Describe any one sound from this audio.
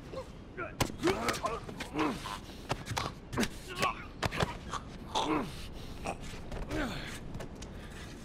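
Bodies scuffle and thud in a close struggle.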